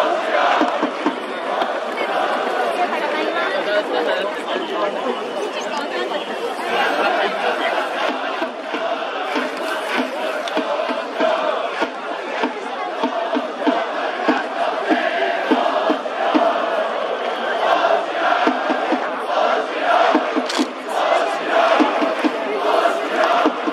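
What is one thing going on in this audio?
A large stadium crowd cheers and chants steadily throughout.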